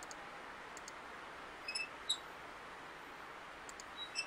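A hand taps on glass.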